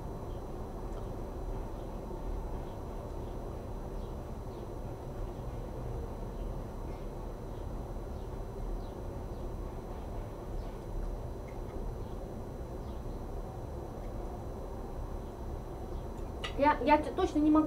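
Cutlery scrapes and clinks on a plate.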